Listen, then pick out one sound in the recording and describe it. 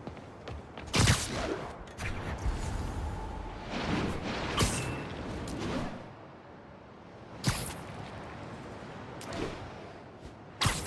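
Web lines shoot out with sharp thwips.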